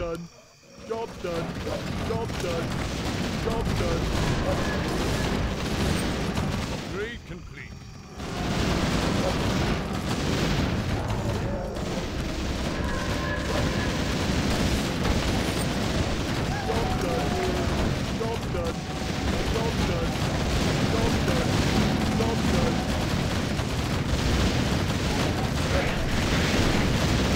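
Game spells and explosions burst and crackle in a dense battle.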